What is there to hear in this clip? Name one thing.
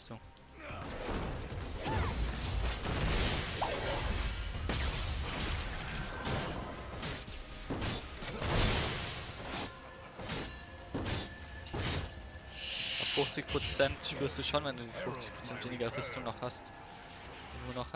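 Magic blasts and sword hits clash in a hectic fight.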